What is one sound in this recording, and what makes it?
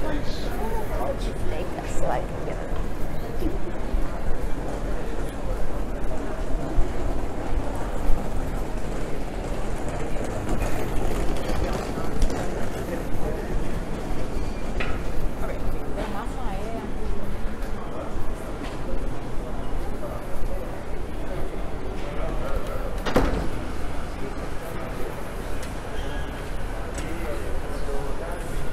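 Many people chatter and murmur nearby outdoors.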